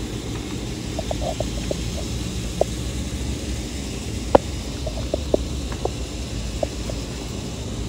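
A lizard's claws scrape and tap on wooden boards.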